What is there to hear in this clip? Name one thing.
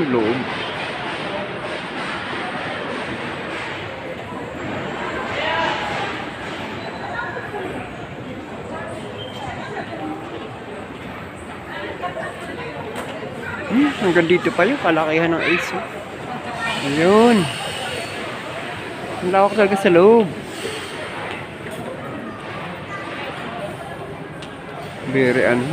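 Indoor crowd chatter murmurs in a large echoing hall.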